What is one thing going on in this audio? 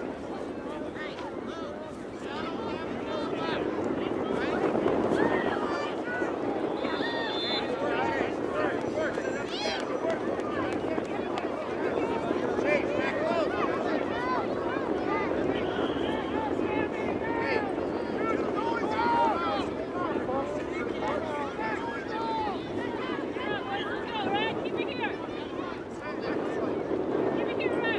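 Spectators on the sidelines shout and cheer outdoors.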